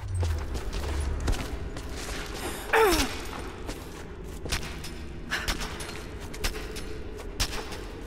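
Hands and feet scrape and tap against rough rock during a climb.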